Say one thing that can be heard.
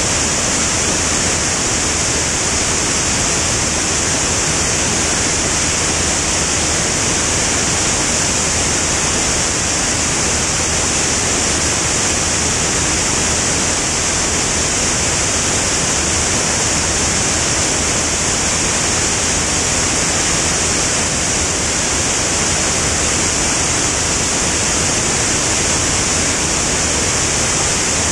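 An aircraft propeller engine drones steadily.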